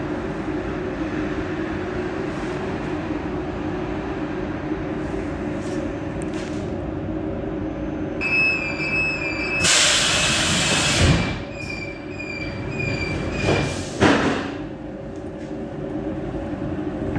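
A train rumbles steadily along the rails, heard from inside the cab.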